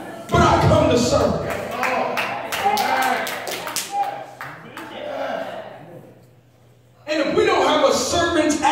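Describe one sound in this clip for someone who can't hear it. A man preaches with animation through a microphone and loudspeakers in a large echoing hall.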